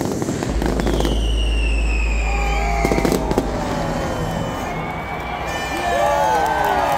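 Fireworks whistle as they rise.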